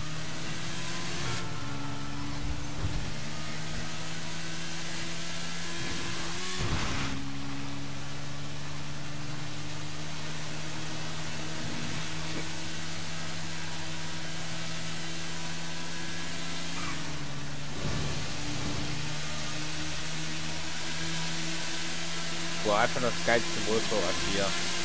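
A motorcycle engine hums while cruising at a steady speed.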